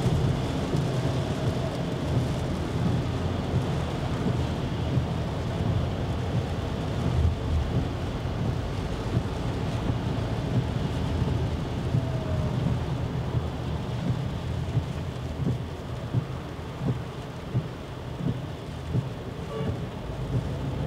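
Rain patters on a car's windscreen.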